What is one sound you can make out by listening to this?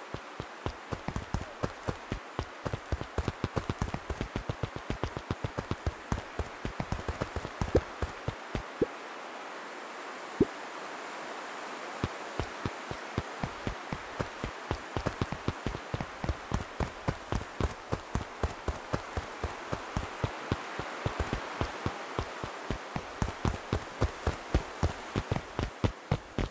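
Light footsteps patter quickly on a dirt path.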